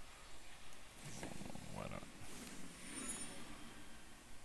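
A magical whoosh sweeps across as a card is played.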